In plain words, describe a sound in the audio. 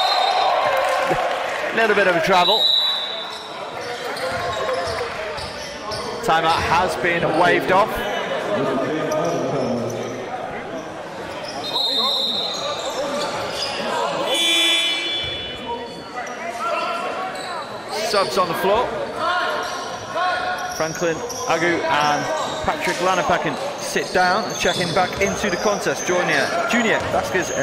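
Spectators and players chatter and call out in a large echoing hall.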